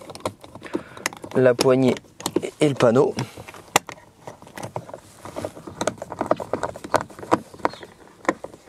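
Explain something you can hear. Plastic clips and a screwdriver click and knock against a car door panel.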